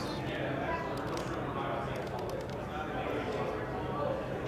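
Plastic game pieces click softly on a tabletop.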